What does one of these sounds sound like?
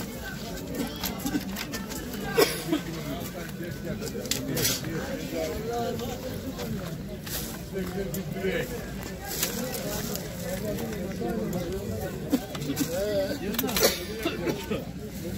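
Voices murmur and chatter nearby, outdoors.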